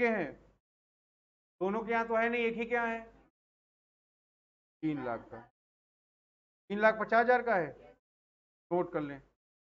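A young man talks calmly into a close microphone, in short bursts with pauses.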